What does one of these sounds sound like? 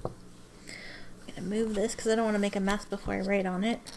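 Paper rustles as a notebook is moved.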